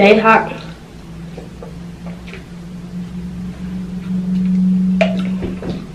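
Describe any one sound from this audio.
A young woman gulps water from a crinkling plastic bottle.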